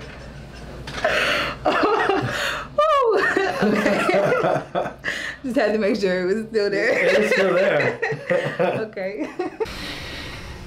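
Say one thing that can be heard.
A young woman laughs loudly and excitedly close by.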